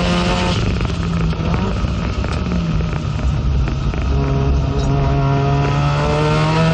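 A race car engine roars loudly close by, its pitch dropping and then climbing again as it revs.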